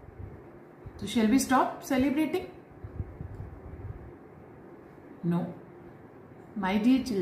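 A middle-aged woman speaks calmly and close by, in short phrases with pauses.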